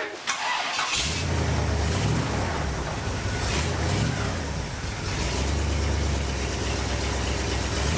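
A car engine starts and idles with a low, rough rumble.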